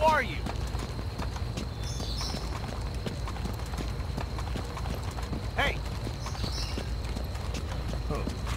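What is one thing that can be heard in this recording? Footsteps tread quickly on hard ground.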